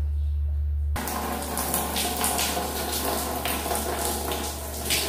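Water sprays hard from a shower head.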